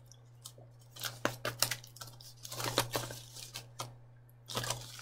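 A person chews and smacks food close to the microphone.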